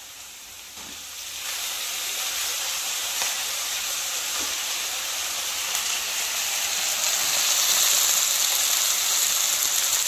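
Oil sizzles and hisses loudly in a hot pan, growing stronger.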